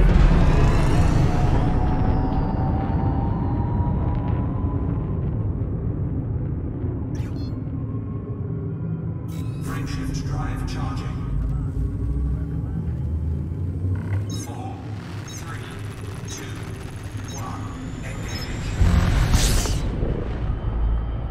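A spacecraft's engines hum with a low, steady rumble.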